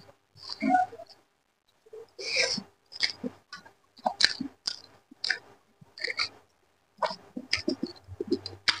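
A young man chews food loudly and wetly, close to a microphone.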